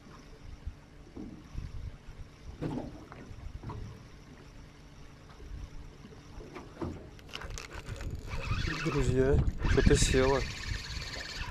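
Small waves lap against a boat's hull.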